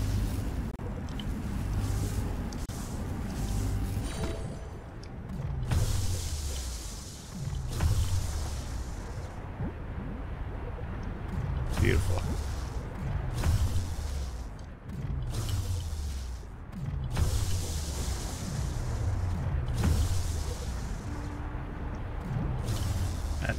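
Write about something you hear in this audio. Electronic game music plays with deep, repeating bass swells.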